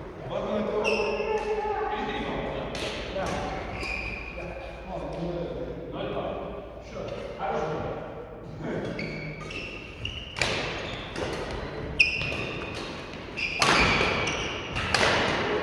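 Several people talk and call out in a large echoing hall.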